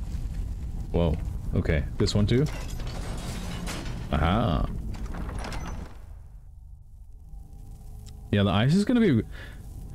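A man speaks casually into a close microphone.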